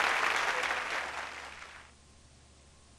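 A crowd applauds loudly, then quickly fades away.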